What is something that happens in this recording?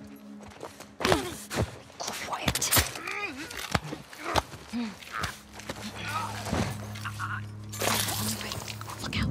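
Blows thud against a body.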